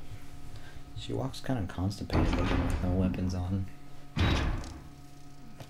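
A heavy metal door creaks slowly open and clanks.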